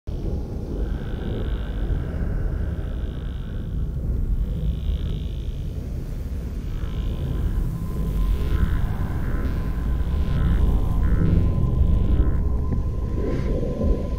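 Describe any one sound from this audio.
A man breathes heavily inside a helmet.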